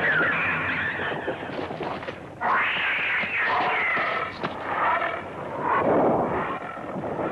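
A monster lets out loud, shrill screeching roars.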